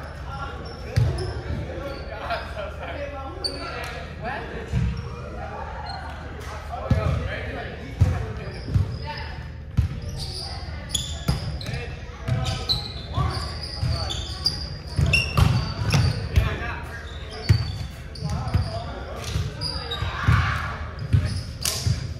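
A volleyball thumps off hands and arms again and again.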